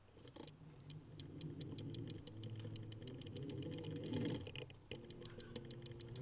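A bicycle freewheel ticks rapidly.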